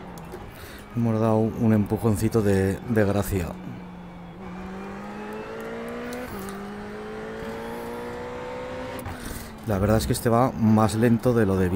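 A racing car engine revs hard and rises in pitch through the gears.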